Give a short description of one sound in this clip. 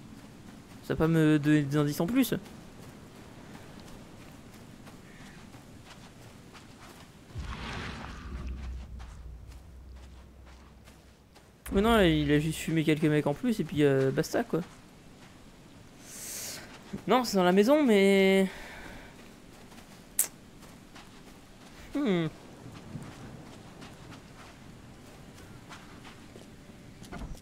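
Footsteps crunch on frosty grass and gravel.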